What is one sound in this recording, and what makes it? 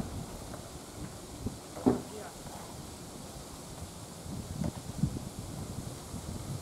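Wind blows outdoors, buffeting in low gusts.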